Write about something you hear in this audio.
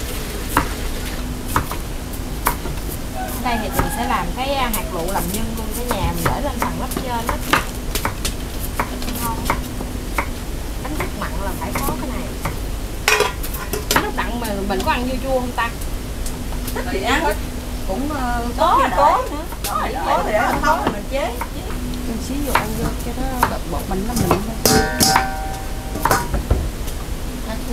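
A knife chops on a wooden board with quick knocks.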